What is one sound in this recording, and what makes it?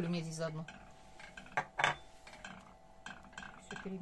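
A spatula scrapes and stirs in a metal pot.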